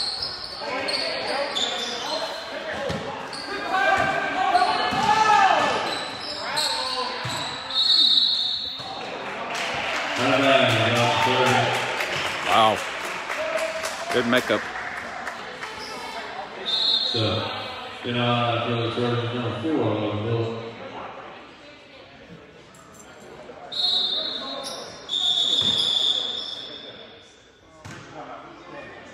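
Spectators talk and call out in a large echoing gym.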